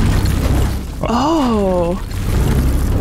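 A huge beast lets out a loud, wavering roar.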